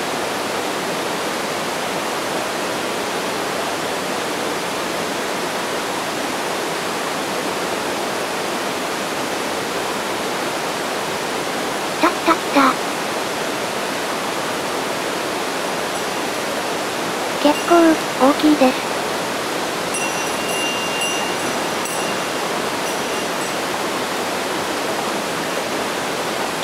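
A small waterfall rushes steadily into a stream.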